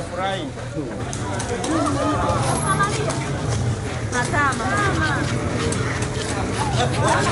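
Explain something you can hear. A crowd murmurs outdoors in the street.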